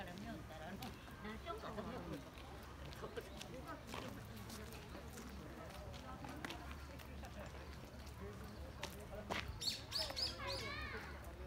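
Footsteps shuffle on a paved path.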